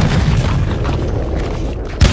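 A building explodes with a deep rumbling blast.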